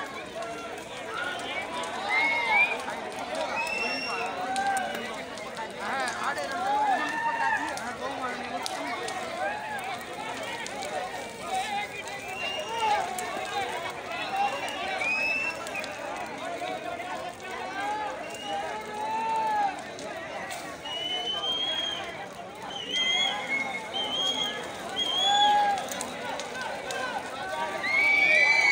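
A large bonfire crackles and roars.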